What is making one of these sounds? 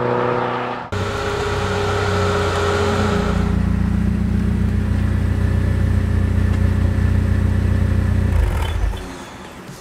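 A sports car engine idles with a deep, steady rumble, then cuts out.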